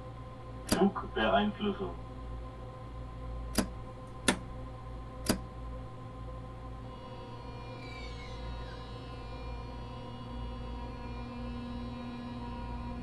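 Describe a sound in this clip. A train engine hums steadily as the train rolls along the tracks.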